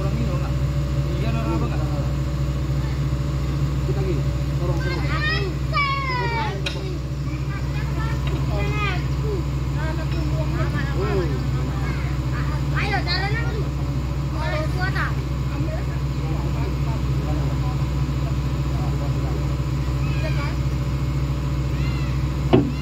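Several men talk casually nearby, outdoors.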